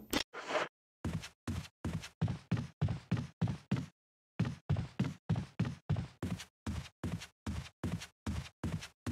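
Footsteps thud quickly on wooden stairs and floor.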